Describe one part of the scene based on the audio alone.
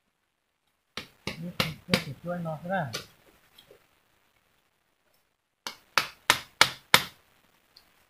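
A blade chops sharply into wood in short bursts.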